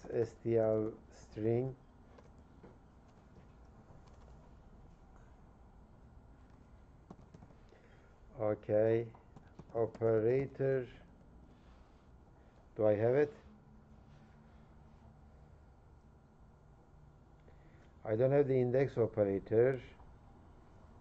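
A middle-aged man speaks calmly in short bursts through a microphone.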